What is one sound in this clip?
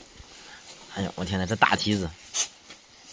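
A puppy whimpers and yelps close by.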